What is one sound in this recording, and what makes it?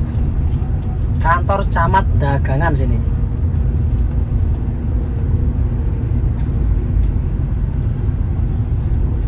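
A car engine hums steadily while driving, with a low road rumble.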